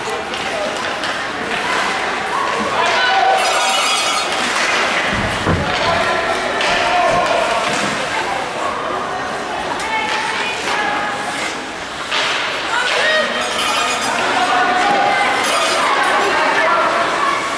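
Spectators talk and call out in an echoing indoor rink.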